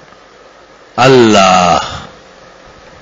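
An elderly man speaks briefly.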